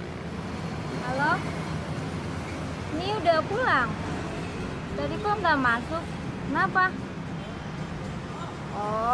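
A young woman talks calmly into a phone close by.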